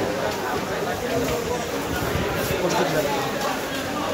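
Shoes step on a hard floor.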